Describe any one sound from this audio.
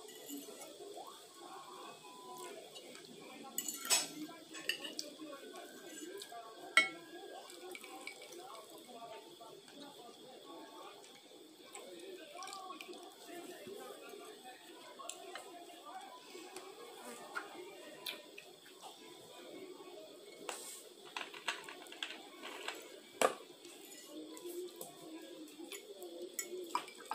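Forks clink and scrape against plates.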